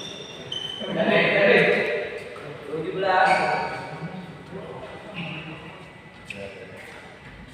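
Young men shout and talk in a large echoing hall.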